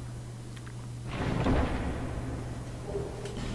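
A heavy wooden chest lid creaks open.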